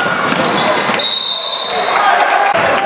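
A referee's whistle blows shrilly.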